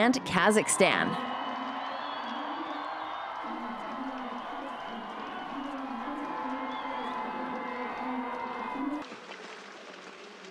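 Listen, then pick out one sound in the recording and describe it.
Skis scrape and swish on snow as a large group of skiers sets off.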